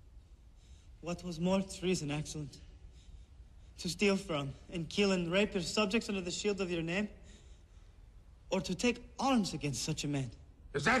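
A man speaks slowly and sternly.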